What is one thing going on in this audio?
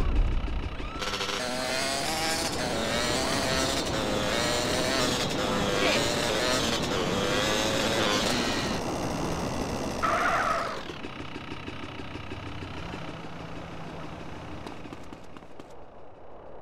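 A motorbike engine roars and revs.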